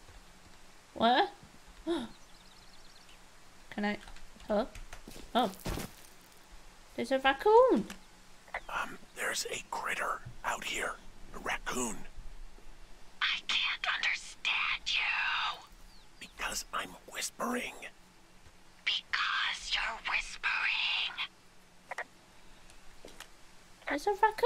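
A young woman talks into a microphone with animation, close up.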